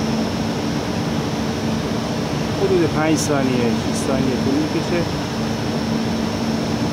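Industrial exhaust fans hum steadily outdoors.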